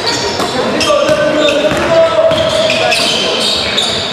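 A basketball bounces with hollow thuds.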